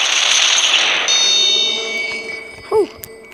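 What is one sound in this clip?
A short bright chime rings out.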